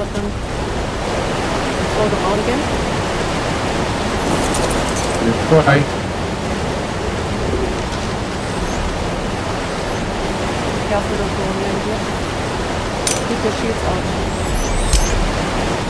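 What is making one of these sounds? Water swirls and gurgles steadily.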